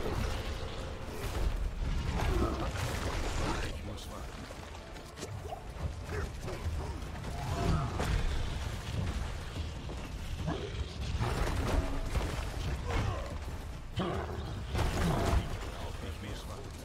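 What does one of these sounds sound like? Fiery spell blasts roar and crackle.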